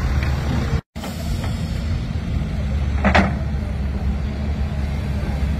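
Wet concrete pours and slaps from a chute.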